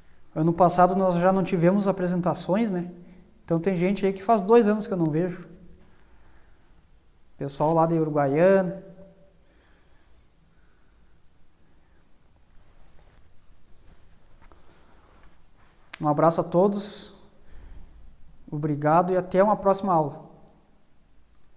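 A man speaks calmly into a microphone, in bursts with long pauses.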